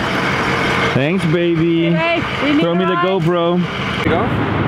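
A young man talks through a vehicle window.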